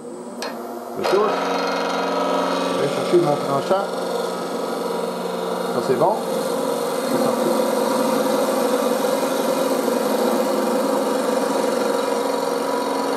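A chisel scrapes and shaves spinning wood.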